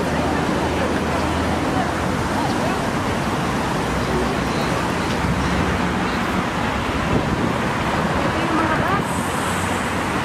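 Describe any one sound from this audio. Traffic hums steadily on a wide road.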